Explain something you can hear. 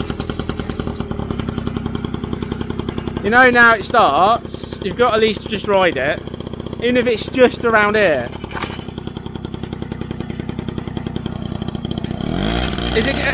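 A small motorbike engine idles with a rapid putter.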